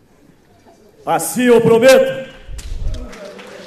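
A man shouts loudly through a microphone.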